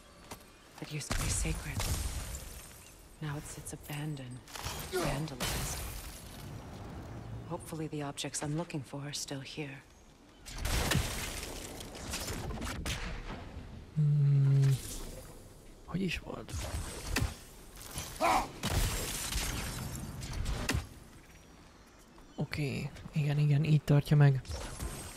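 An axe whooshes and strikes with heavy thuds.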